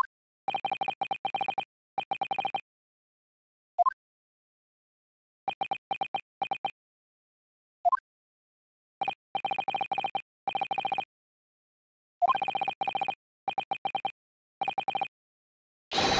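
Rapid short beeps tick in bursts.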